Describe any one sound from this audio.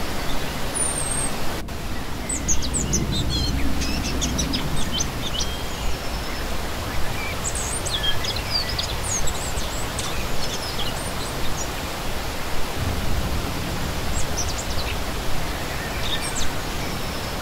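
A shallow stream rushes and babbles steadily over rocks, outdoors.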